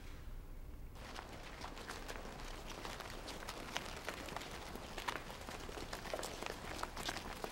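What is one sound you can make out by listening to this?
Many footsteps shuffle outdoors.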